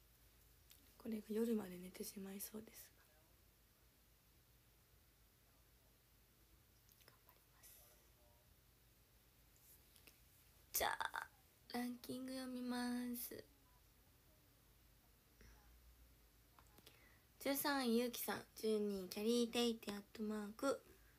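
A young woman speaks calmly and close up, in short bursts with pauses.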